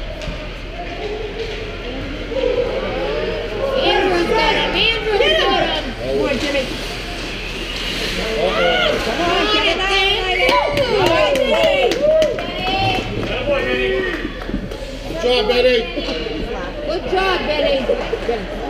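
Ice skates scrape and carve across the ice.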